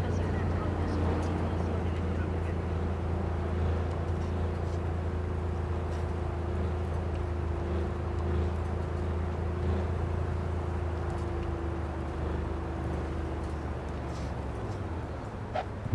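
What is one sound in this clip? Tyres roll on smooth pavement.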